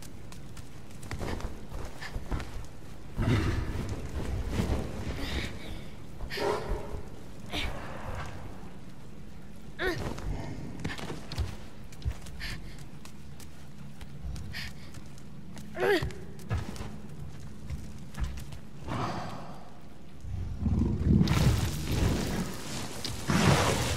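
Scuffing and grabbing noises come as someone climbs over rough fur.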